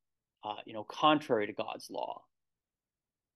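A man speaks calmly into a microphone, as if over an online call.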